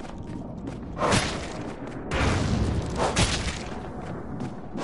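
A sword swishes and strikes in a burst of blows.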